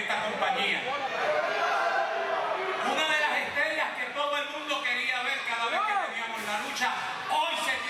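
A referee slaps the mat.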